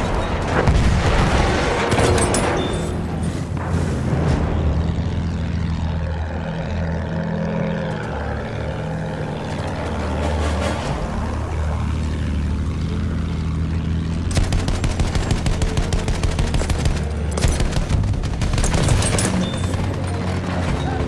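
A propeller plane engine drones steadily throughout.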